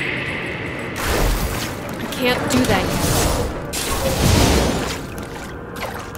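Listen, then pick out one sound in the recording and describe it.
Magic spells crackle and boom in bursts.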